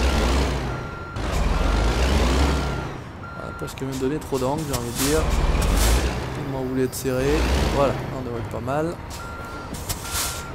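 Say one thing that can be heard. A truck's reversing alarm beeps in a steady rhythm.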